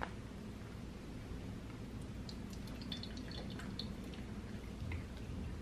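Water trickles from a kettle spout onto coffee grounds.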